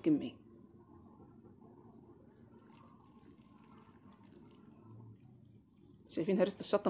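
Liquid pours and trickles into a glass jar.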